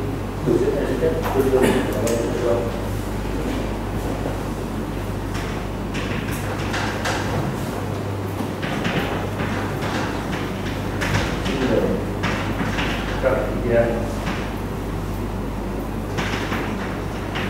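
A middle-aged man lectures calmly, heard through a microphone in a large hall.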